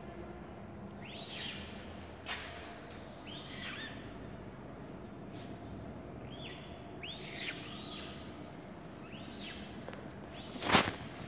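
A chick peeps loudly, again and again, close by.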